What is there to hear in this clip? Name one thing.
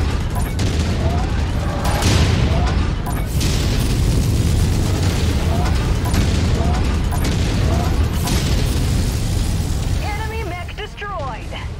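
Explosions boom and crackle in rapid bursts.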